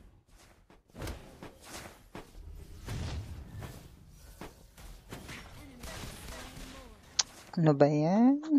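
Magic blasts and clashing battle effects whoosh and crackle.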